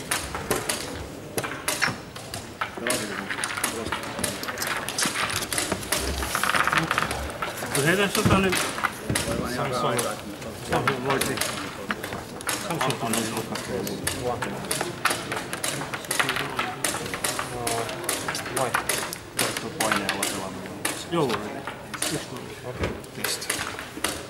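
Chess pieces click sharply on boards.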